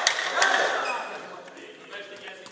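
Young men shout and cheer together in an echoing hall.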